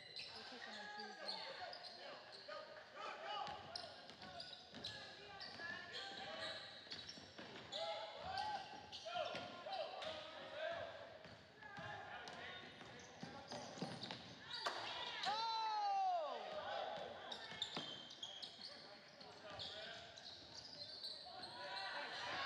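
A crowd of spectators chatters and cheers throughout.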